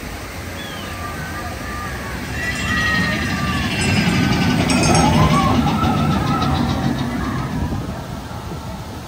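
Riders scream and cheer as a train passes close by.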